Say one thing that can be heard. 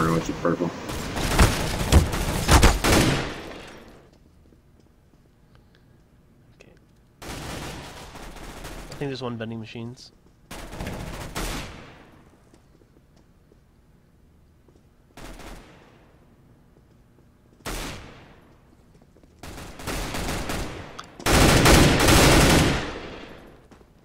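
Rapid rifle gunfire rings out in bursts.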